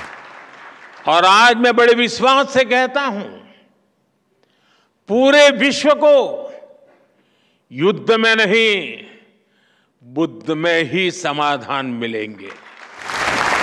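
An elderly man speaks with animation through a microphone in a large hall.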